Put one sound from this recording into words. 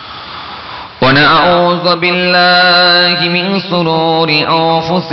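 A man chants loudly in a drawn-out, melodic voice through a microphone.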